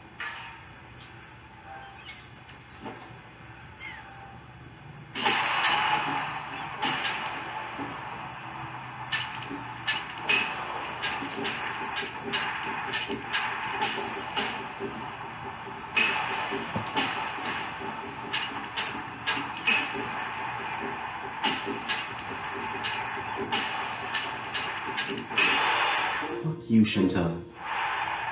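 Sharp hits and game sound effects play through a television speaker.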